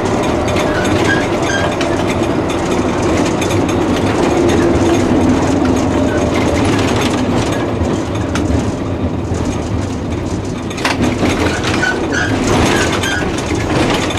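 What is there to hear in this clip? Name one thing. Tram wheels squeal and screech on curved track.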